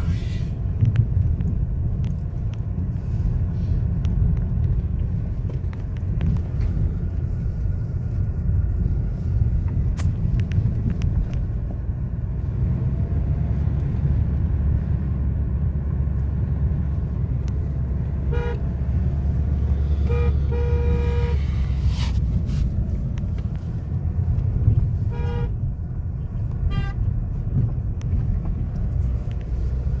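A car engine hums steadily with low road rumble from inside the car.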